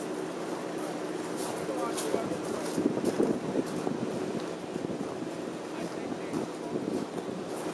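An electric streetcar rolls slowly along rails with a low rumble.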